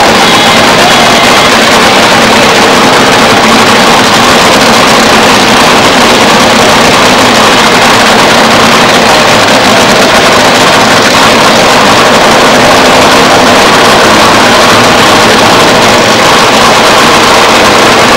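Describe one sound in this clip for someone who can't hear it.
A nitro-fuelled dragster engine roars, heavily distorted.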